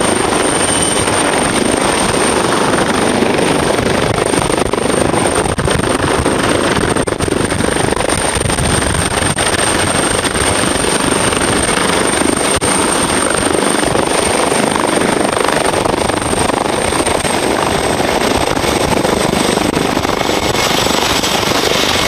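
A helicopter's rotor thumps loudly close by.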